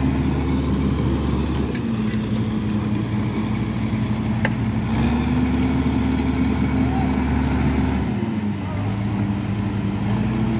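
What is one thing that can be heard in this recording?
A bulldozer engine rumbles loudly and steadily, rising and falling as it works.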